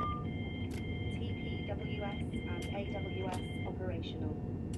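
A warning chime beeps rapidly, then stops.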